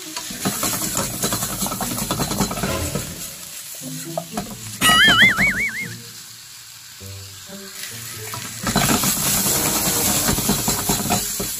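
A wooden spatula scrapes and stirs against a pan.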